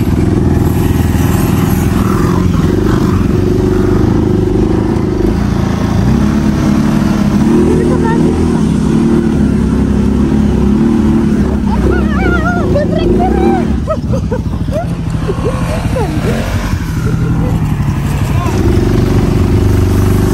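An off-road vehicle's engine drones and revs loudly nearby.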